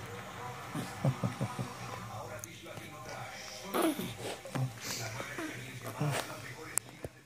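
A newborn baby whimpers and grunts.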